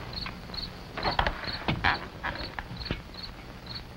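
A rifle clicks and rattles as a man handles it.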